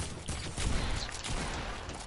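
A pickaxe strikes a wall with sharp thuds.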